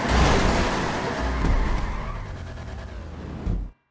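Tyres screech on asphalt.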